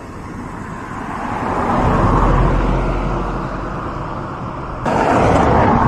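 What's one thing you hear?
A car drives past and fades away.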